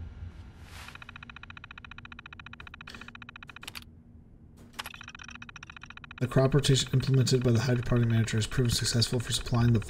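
A computer terminal ticks rapidly as text prints out.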